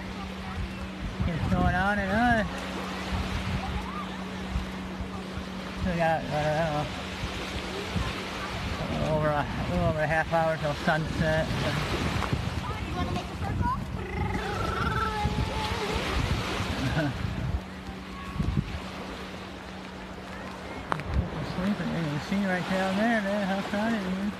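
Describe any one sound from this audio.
Small waves lap and wash up on a sandy shore.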